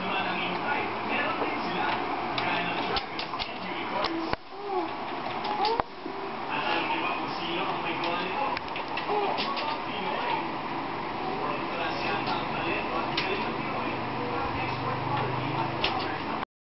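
Keys on a computer keyboard clack as someone types quickly.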